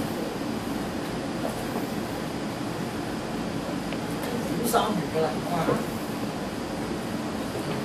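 A cloth rubs against a whiteboard.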